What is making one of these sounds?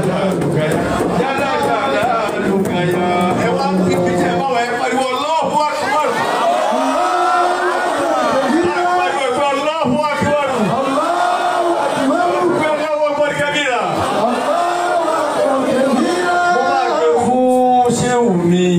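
A crowd of men sings and chants loudly together in a large echoing hall.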